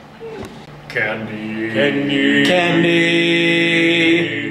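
Young men sing together loudly.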